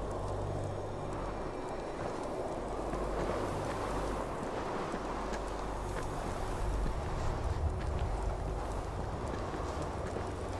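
A torch flame crackles and hisses close by.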